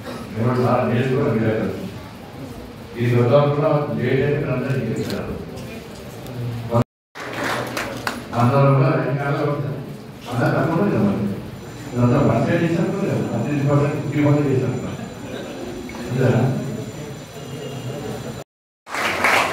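A man speaks with animation into a microphone, heard through a loudspeaker in an echoing room.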